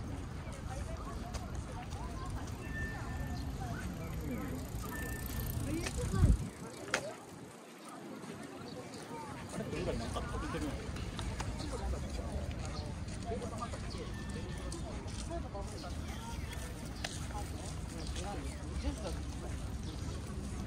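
Men and women chat quietly nearby outdoors.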